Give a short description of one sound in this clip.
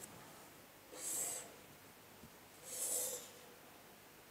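A plastic ruler slides across paper.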